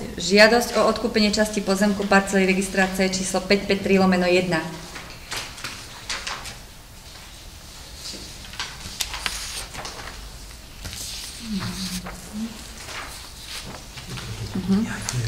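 A woman speaks calmly into a microphone nearby.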